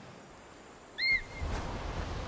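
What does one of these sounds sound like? An eagle screeches shrilly.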